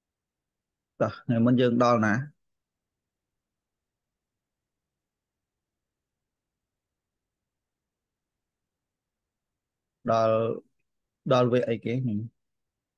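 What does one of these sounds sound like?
A man speaks calmly into a close microphone, with long pauses.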